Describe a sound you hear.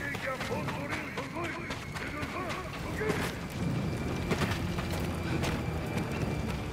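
Footsteps run quickly over ground and wooden boards.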